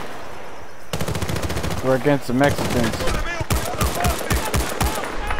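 A rifle fires bursts of loud, sharp shots.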